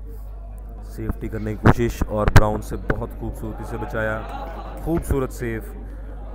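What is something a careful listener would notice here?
Men in a small crowd talk and exclaim loudly nearby.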